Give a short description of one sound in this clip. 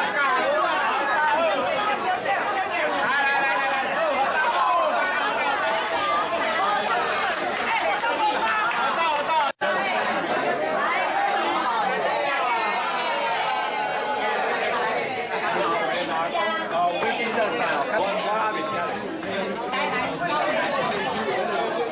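A crowd of men and women chatters and cheers loudly close by.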